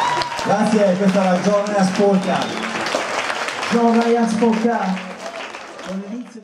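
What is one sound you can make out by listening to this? An audience claps along to the music.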